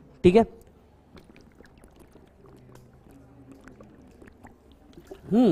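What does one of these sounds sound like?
A man gulps a drink from a bottle close by.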